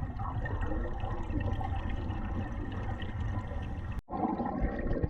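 Scuba bubbles gurgle and rumble up close underwater.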